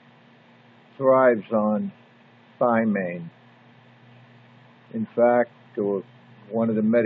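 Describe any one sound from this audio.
An elderly man speaks slowly and calmly, close to a microphone, with pauses between phrases.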